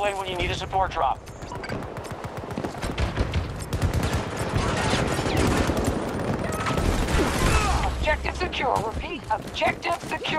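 Rifle shots crack in rapid bursts nearby.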